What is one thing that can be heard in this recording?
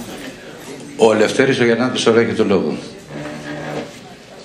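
A man speaks into a microphone in a room, his voice amplified.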